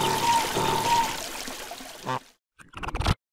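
Water sprays and splashes steadily, then trails off.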